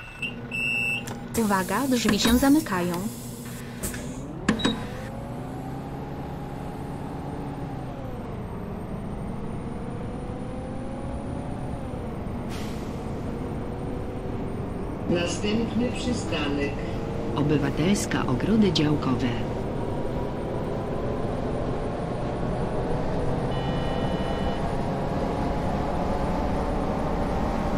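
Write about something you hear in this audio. A bus engine hums steadily, its pitch rising and falling as it speeds up and slows down.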